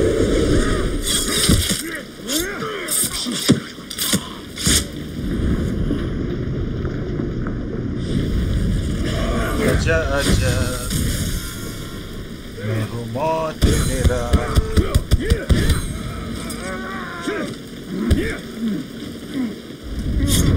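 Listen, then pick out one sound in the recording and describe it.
Blades slash and strike with sharp metallic hits.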